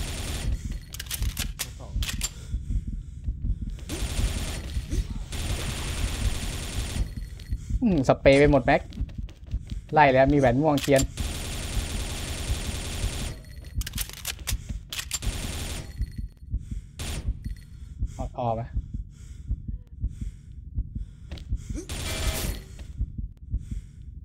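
Rapid bursts of automatic rifle fire crack out.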